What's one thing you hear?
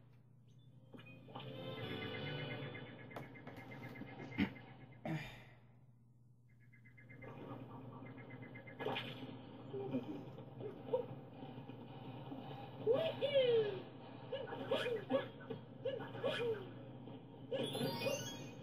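Video game music plays from a television speaker.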